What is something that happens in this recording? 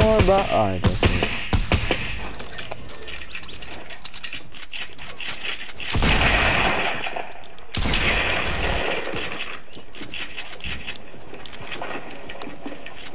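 Wooden walls and ramps are built with rapid clattering thuds.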